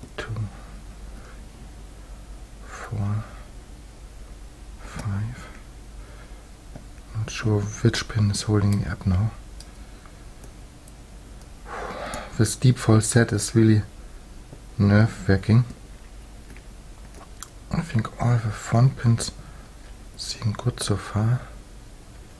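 Metal lock picks click and scrape softly inside a lock.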